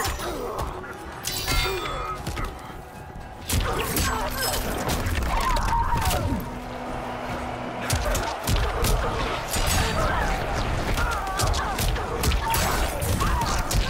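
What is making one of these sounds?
Heavy punches and kicks thud and smack in quick succession.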